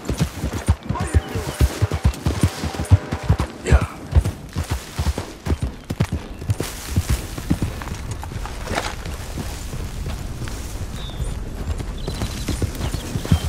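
Horse hooves thud on soft ground at a gallop.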